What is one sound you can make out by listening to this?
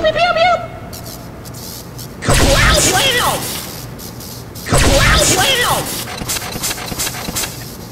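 An electric weapon fires with crackling, buzzing zaps.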